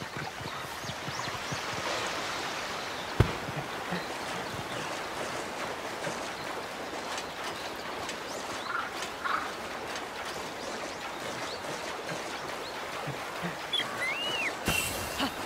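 A stream rushes steadily.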